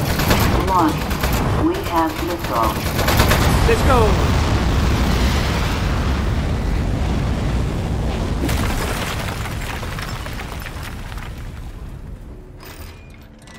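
An explosion bursts with a loud blast and a deep rumble that slowly fades.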